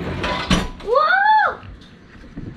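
A young girl squeals with rising and falling pitch nearby.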